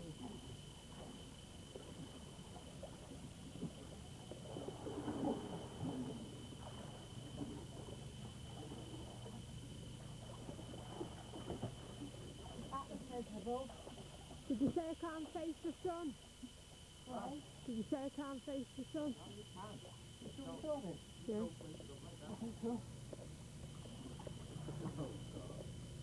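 Water sloshes as a man wades through a pool.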